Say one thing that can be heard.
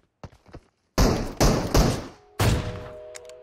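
Gunshots crack loudly in quick bursts.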